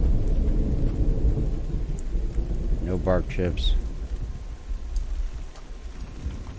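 Rain falls and wind blows steadily outdoors.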